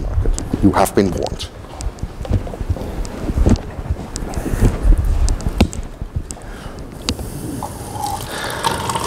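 A man speaks calmly to an audience in a room.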